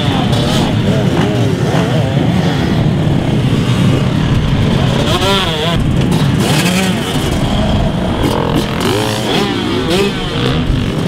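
A dirt bike engine revs up and down sharply close by.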